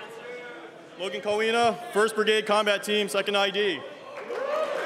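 A young man announces loudly through a microphone in a large echoing hall.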